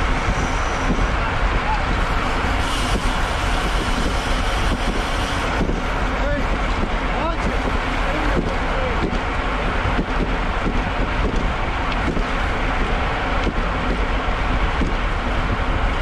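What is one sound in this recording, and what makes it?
Wind rushes loudly past as a bicycle rides fast.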